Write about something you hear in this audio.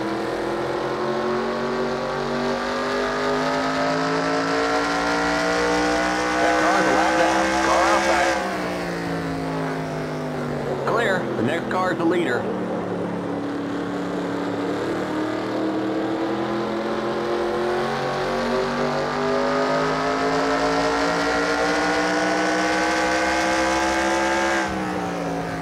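A racing car engine roars steadily, its pitch rising as it speeds up and dropping as it slows for the turns.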